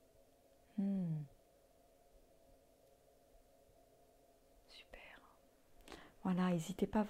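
A middle-aged woman speaks calmly and close to a microphone.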